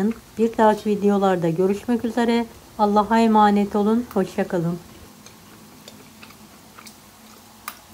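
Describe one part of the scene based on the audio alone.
A fork clinks lightly against a ceramic plate.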